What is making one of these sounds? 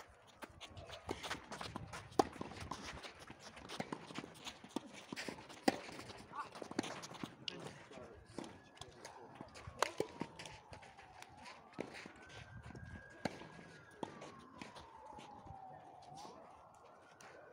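Tennis balls are struck sharply with rackets in a rally.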